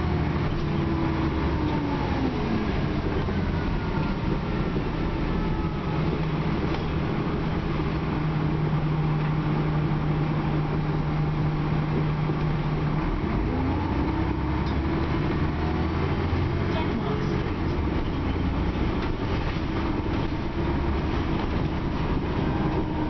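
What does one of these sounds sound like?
A bus engine hums and whines steadily while the bus drives along.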